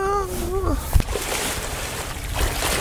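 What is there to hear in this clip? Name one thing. Water splashes loudly.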